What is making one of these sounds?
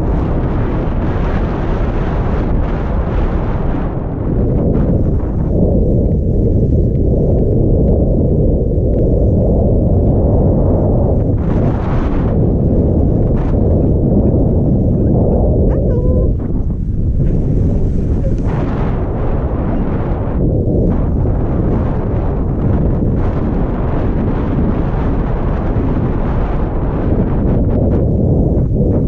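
Wind rushes loudly past, rumbling close by.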